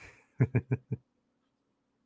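A middle-aged man chuckles briefly close to a microphone.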